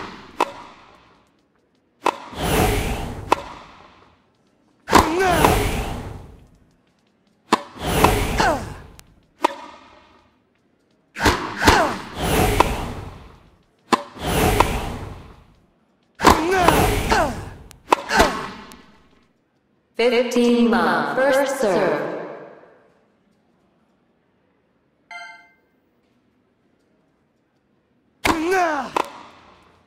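A tennis ball is hit hard with a racket, again and again.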